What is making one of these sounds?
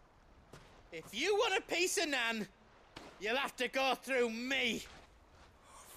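A man speaks defiantly and forcefully, close by.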